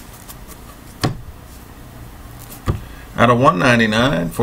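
Trading cards slide and tap against a table.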